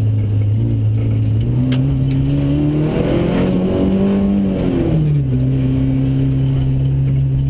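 Gravel and loose stones rattle under the tyres.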